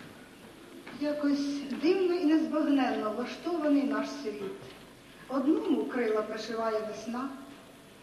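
A middle-aged woman recites with feeling through a microphone.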